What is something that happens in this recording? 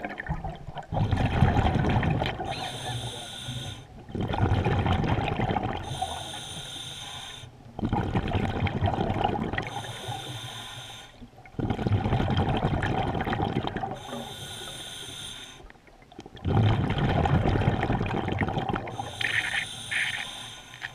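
Exhaled bubbles rumble and gurgle in bursts.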